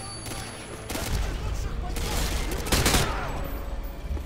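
A rifle fires a burst of loud gunshots.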